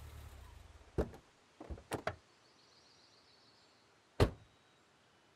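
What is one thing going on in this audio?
Car doors open and slam shut.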